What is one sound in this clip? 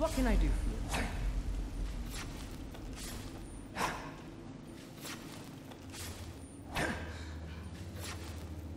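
Footsteps thud on a dirt floor.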